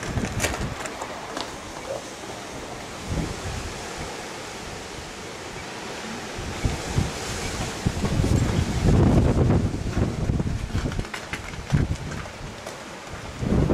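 A mule gallops with its hooves thudding on packed dirt.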